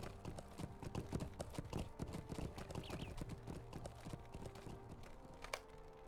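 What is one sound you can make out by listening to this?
Horse hooves gallop over the ground.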